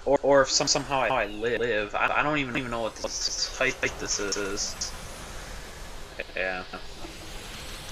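Magical energy blasts whoosh and crash with booming bursts.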